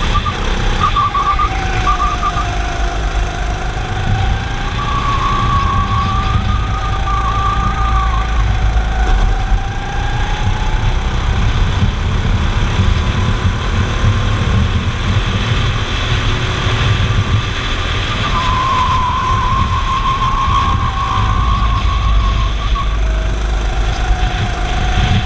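Wind rushes past a fast-moving go-kart.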